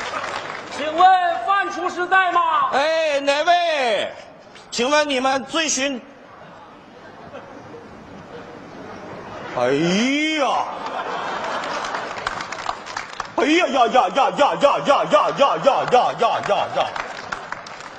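A middle-aged man speaks with animation through a microphone on a stage.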